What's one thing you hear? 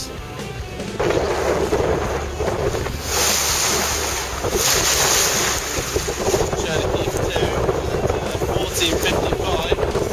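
Strong wind roars and buffets outdoors on open water.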